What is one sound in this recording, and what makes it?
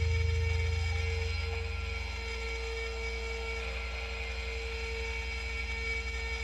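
Electronic music with a fast, pulsing deep beat and steady droning tones plays.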